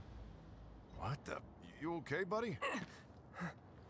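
A young man asks a question with concern.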